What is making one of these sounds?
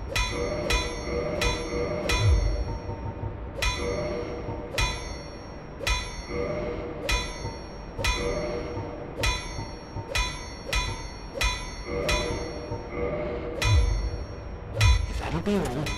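Short bright menu chimes ring out, one after another.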